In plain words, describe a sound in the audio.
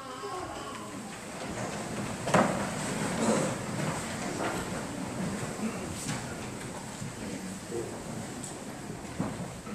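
A congregation rises to its feet with shuffling and rustling.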